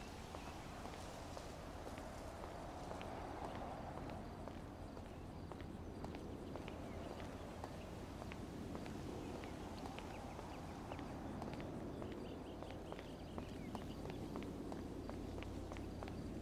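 Footsteps tap on hard paving at a walking pace, then quicken to a run.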